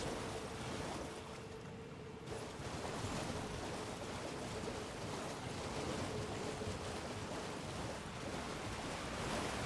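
A horse splashes at a gallop through shallow water.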